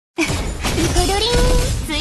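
Magic energy blasts with a loud whooshing boom.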